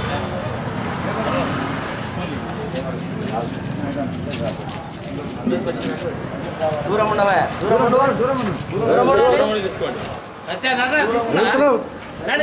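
Men talk nearby in a crowd.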